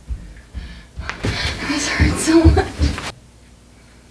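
A body thumps onto a carpeted floor.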